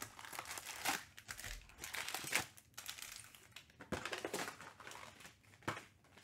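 Foil packs rustle and slide as they are stacked.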